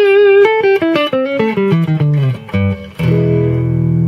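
An electric guitar plays a descending slide through an amplifier.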